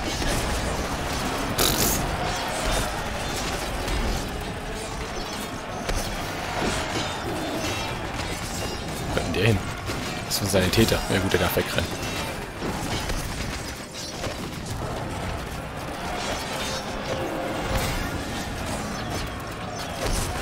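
Fiery blasts and gunfire crackle in a battle.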